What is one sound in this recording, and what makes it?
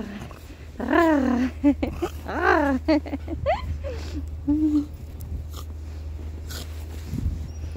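A dog paws and digs through crunching snow.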